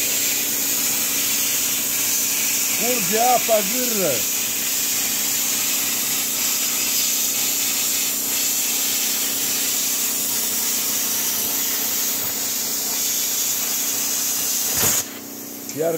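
A plasma cutter hisses loudly and steadily while cutting metal.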